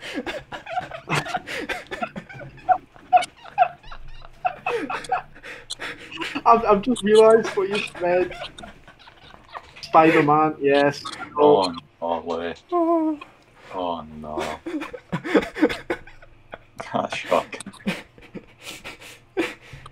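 Young men laugh loudly over an online call.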